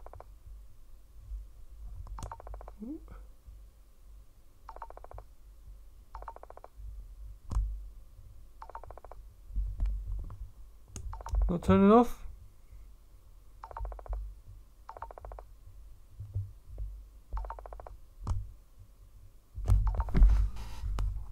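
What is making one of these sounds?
Plastic headphones are handled and tapped close to a microphone.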